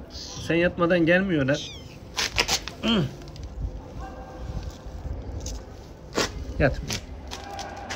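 A kitten mews.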